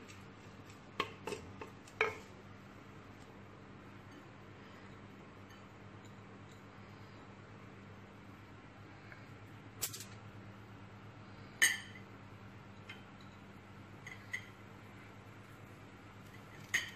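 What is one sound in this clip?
A wooden spoon knocks and scrapes against a clay pot.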